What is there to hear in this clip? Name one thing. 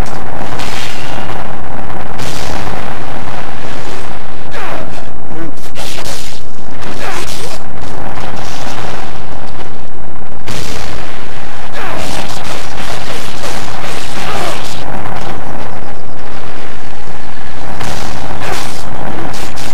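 Fiery explosions burst and roar.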